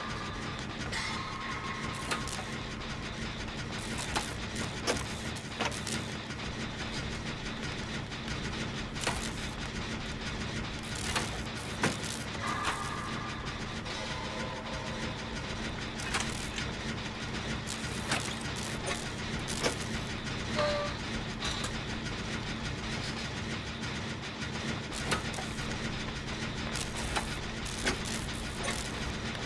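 A machine rattles with sharp metallic clicks and knocks.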